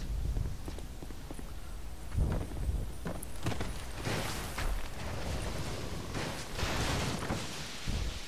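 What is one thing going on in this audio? Armoured footsteps thud steadily on stone.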